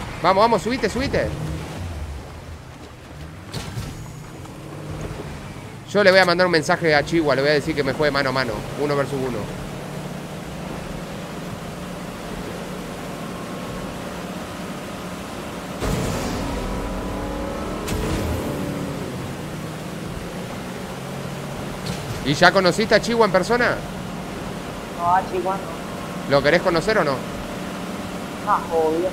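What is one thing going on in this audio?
Water splashes against a speeding boat.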